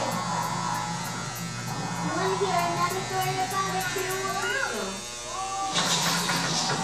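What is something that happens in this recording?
Electric hair clippers buzz steadily close by.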